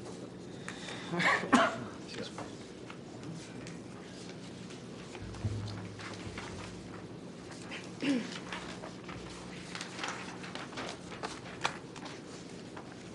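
Paper rustles and crackles near a microphone.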